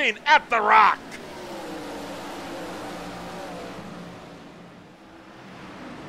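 Racing car engines drone as a pack of cars speeds by.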